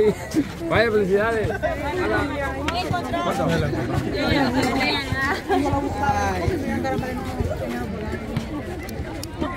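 A crowd of young people chatters outdoors.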